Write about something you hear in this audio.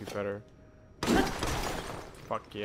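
Rock shatters and crumbles apart.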